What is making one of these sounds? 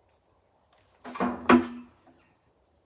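A rifle's lever action clacks open and shut.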